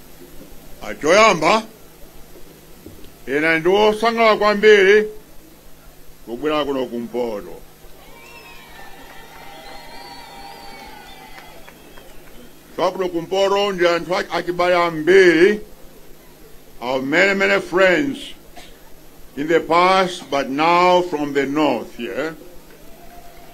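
An elderly man speaks forcefully into a microphone over loudspeakers outdoors, with long pauses between phrases.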